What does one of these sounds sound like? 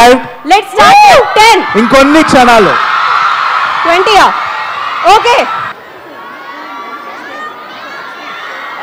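A large crowd cheers and screams in a big hall.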